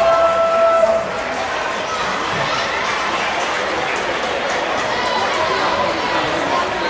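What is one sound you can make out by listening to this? Sneakers squeak on a wooden court as players run.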